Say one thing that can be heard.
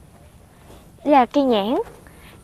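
A woman calls out loudly nearby in two short, rising-and-falling bursts.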